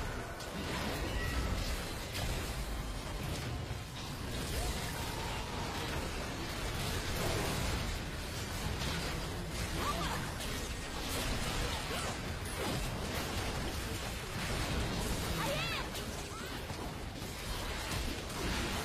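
Magic blasts and combat effects of a video game battle crackle and whoosh.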